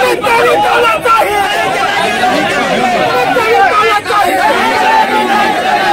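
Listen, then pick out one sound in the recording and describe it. A crowd of men shout slogans loudly together outdoors.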